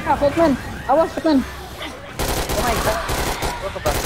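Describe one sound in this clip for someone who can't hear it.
An explosion bursts with a roar of flames.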